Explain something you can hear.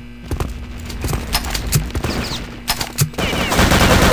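A submachine gun fires short bursts.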